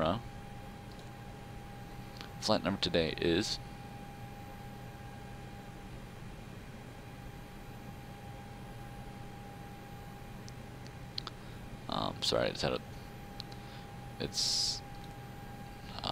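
Keys on a keypad click now and then.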